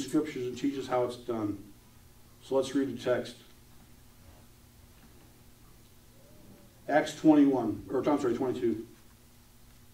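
A middle-aged man speaks calmly through a microphone and loudspeakers.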